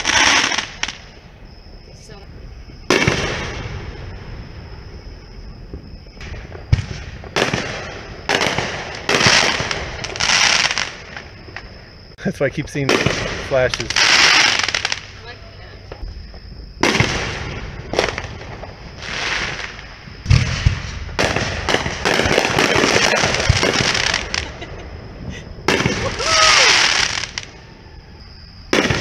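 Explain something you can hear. Fireworks bang and crackle loudly outdoors, one burst after another.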